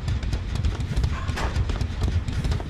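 A metal locker door bangs open.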